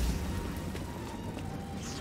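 A lightsaber hums steadily.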